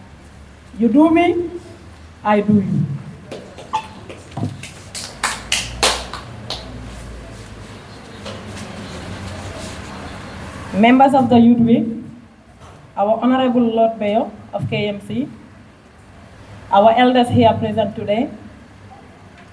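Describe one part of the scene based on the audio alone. A young woman speaks calmly into a microphone, heard through a loudspeaker.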